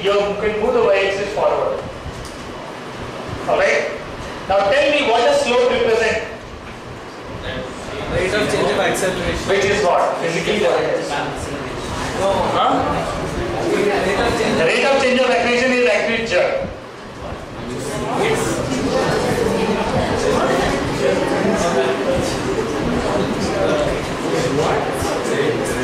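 A man lectures calmly through a headset microphone.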